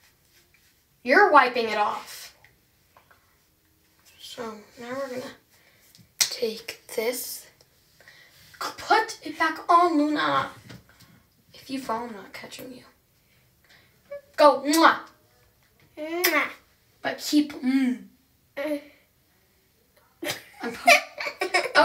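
A teenage girl talks close by with animation.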